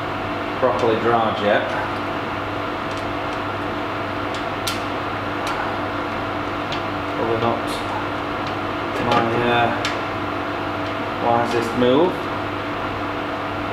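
A metal keg coupler clicks and clanks.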